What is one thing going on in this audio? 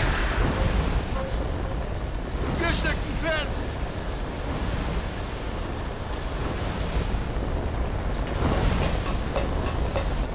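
Flames roar.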